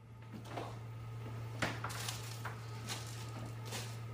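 Glass jars clink as a woman rummages through a fridge.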